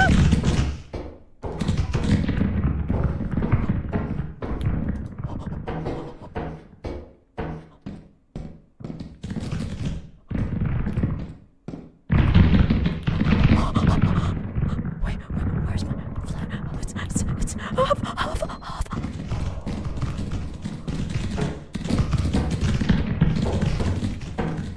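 Young women talk and laugh with animation through microphones.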